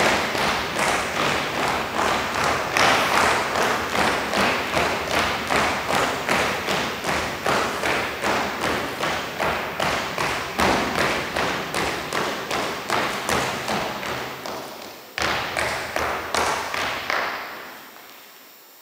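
Feet tap and step on a wooden floor in a large echoing hall.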